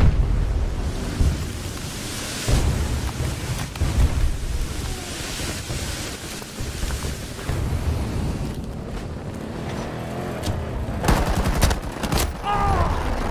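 Gunshots and explosions boom and crack.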